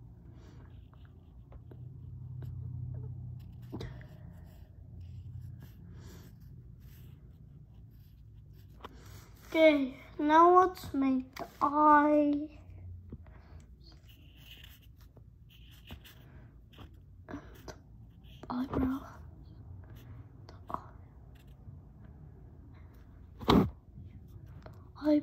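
A felt-tip marker scratches softly across paper towel.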